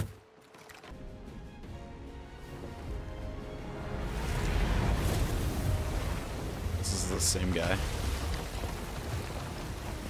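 Heavy water crashes loudly over a ship in a storm.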